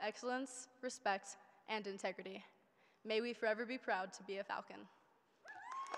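A young woman speaks calmly into a microphone over loudspeakers in a large hall.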